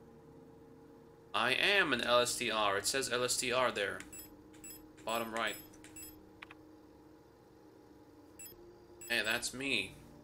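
Menu interface beeps click as items are selected.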